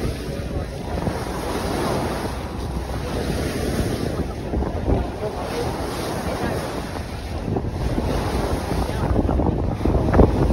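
Wind rumbles and buffets steadily.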